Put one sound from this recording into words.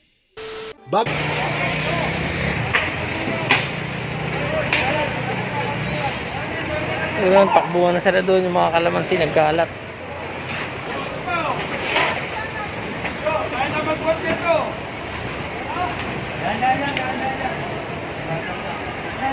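A busy street crowd chatters all around outdoors.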